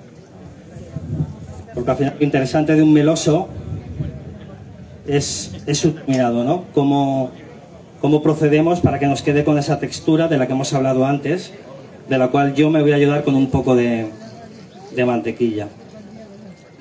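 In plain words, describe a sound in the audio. A middle-aged man speaks with animation through a microphone, outdoors.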